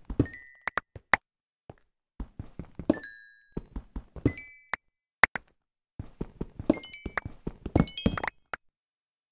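Short high popping blips sound as items are picked up.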